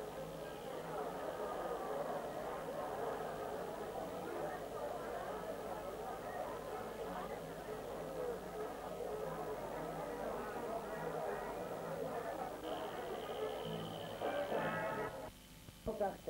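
A crowd of men and women chatters and shouts all at once in a noisy room.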